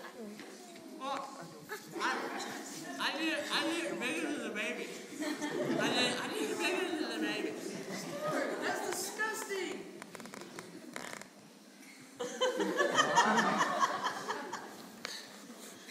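Young women and girls talk with animation in a large echoing hall.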